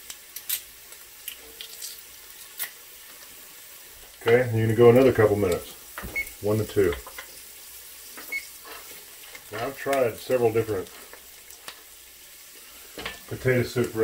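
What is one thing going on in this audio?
A spoon scrapes and stirs in a heavy pot.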